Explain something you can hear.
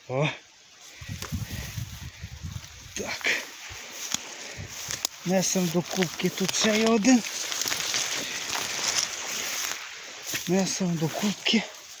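Footsteps crunch through dry grass and leaves.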